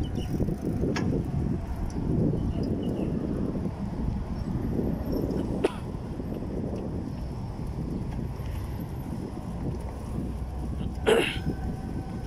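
A bicycle rattles with small clicks over bumps.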